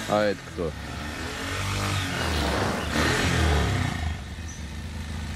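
A motorcycle engine revs and roars nearby.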